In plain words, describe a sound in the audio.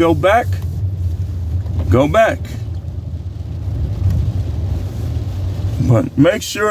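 A car engine hums steadily, heard from inside the car.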